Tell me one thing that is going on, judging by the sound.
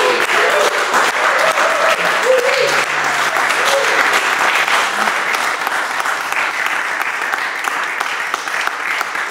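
A group of people clap their hands in applause.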